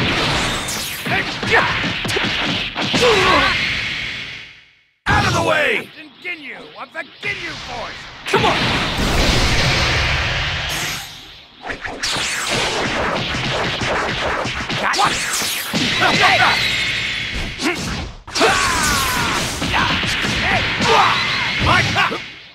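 Punches and energy blasts crash and boom in a fast fight.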